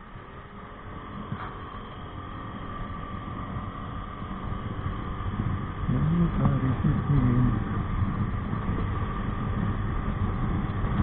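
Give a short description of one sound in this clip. A motorcycle engine hums steadily as the bike rides along a road.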